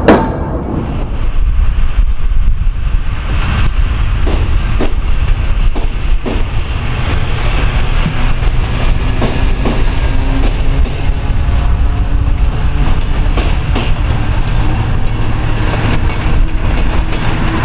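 A train rolls by in the distance with a steady rumble.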